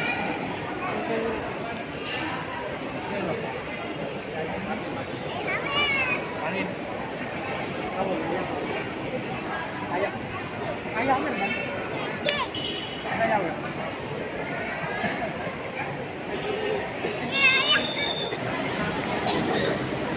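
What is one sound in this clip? A crowd of adults murmurs and chatters in a large echoing hall.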